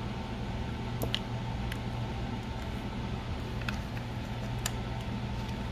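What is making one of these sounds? Small plastic parts click and tap as fingers press them into place.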